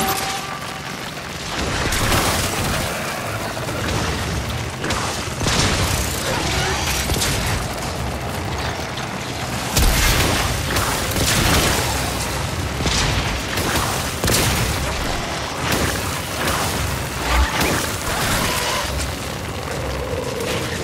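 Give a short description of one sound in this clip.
Gunfire and blasts crackle rapidly in a video game.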